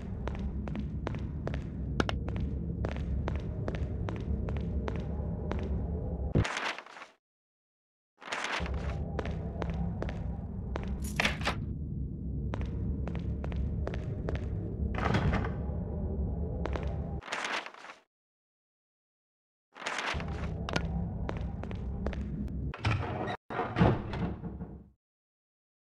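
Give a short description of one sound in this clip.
Footsteps thud quickly and evenly on a hard floor.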